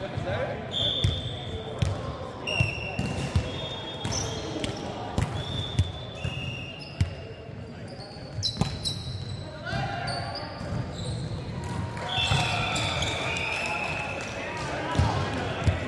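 A volleyball thumps off players' hands and arms.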